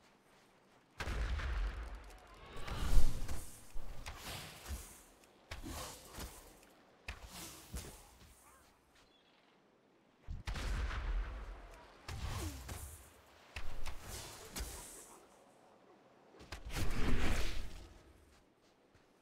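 Combat blows and spell effects strike in bursts.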